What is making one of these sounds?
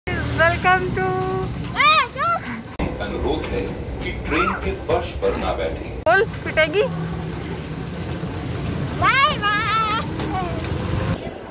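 A small child calls out in a high voice.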